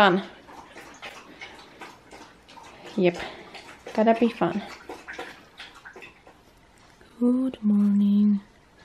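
A dog howls and whines in short, rising calls.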